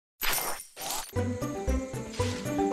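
Cheerful game music plays.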